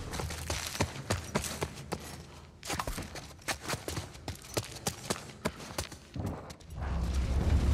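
Footsteps scuff softly on a hard floor.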